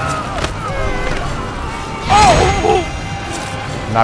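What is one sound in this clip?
A sword strikes with a sharp metallic clang.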